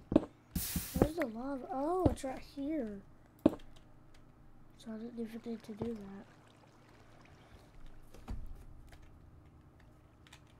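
Lava bubbles and pops softly.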